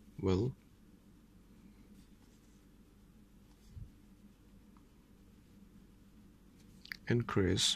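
A pencil scratches across paper as it writes.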